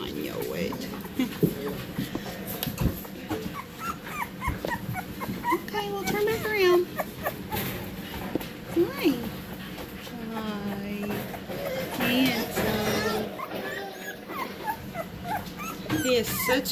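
A young puppy whimpers and squeaks.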